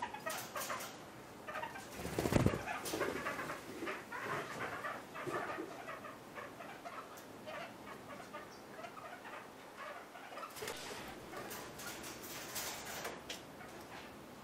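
A parrot pecks and nibbles at food in a dish.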